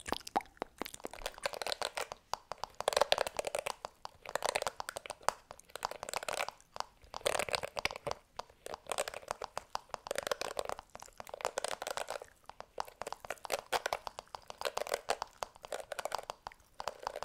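Fingers scratch and brush over bristles close to a microphone with a soft rustle.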